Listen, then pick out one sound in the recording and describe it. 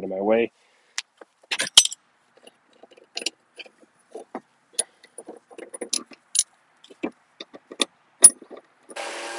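A metal scraper scrapes and knocks against a mower deck.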